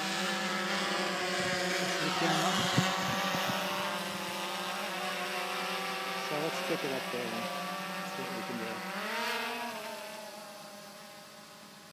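A drone's propellers buzz overhead with a steady whine, fading as it climbs away.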